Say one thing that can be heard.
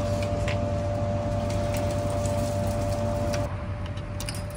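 A vending machine hums steadily.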